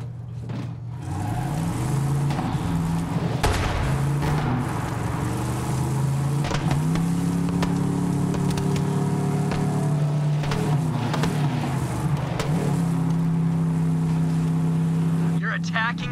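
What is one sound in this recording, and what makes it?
A buggy engine revs and roars as it drives, rising and falling in pitch.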